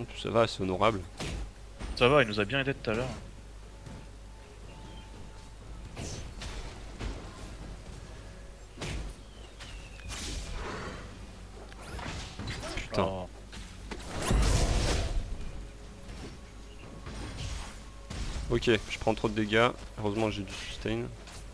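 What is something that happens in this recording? Magic spells crackle and burst in a fast game battle.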